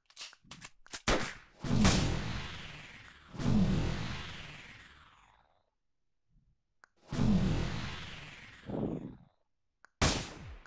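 Loud game gunshots boom one after another and ring out.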